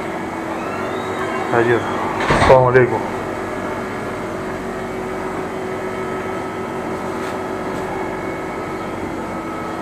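A refrigerated display case hums steadily.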